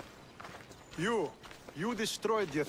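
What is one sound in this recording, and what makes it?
A man speaks with surprise, as if questioning.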